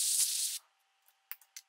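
An air hose hisses loudly in a short blast.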